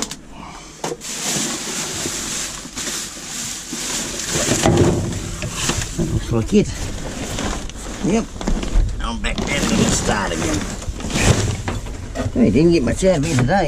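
Plastic bags and cardboard rustle and crinkle as hands rummage through rubbish.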